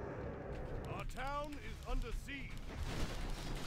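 A young man speaks close to a microphone.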